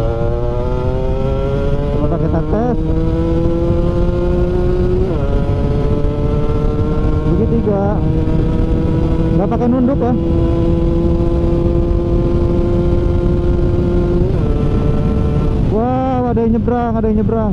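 Wind rushes and buffets loudly past a moving rider.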